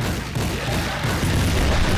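A gun fires in rapid, heavy booms.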